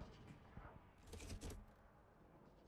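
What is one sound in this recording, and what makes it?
A metal lever clunks as it is pulled down.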